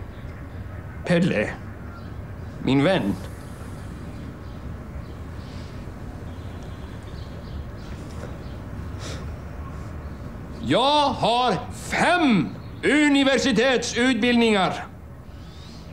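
An elderly man speaks briefly, then shouts angrily.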